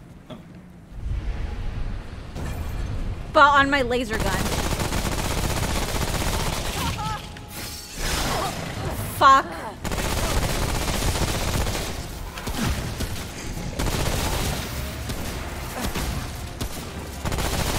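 Gunfire rattles steadily in a game.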